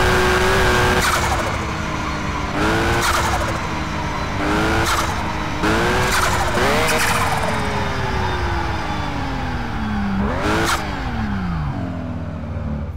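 A car engine revs up and drops again and again as the car slows down.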